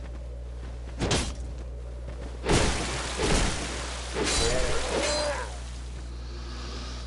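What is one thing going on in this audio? Sword blows clash and thud in a fight.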